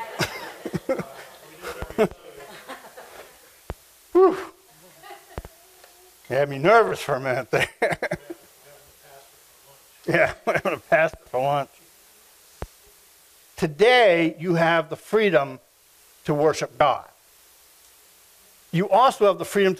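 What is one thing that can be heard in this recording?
A middle-aged man speaks calmly in bursts, heard through a microphone in a room with some echo.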